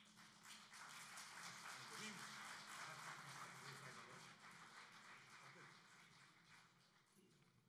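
A group of men sing together in low voices through microphones.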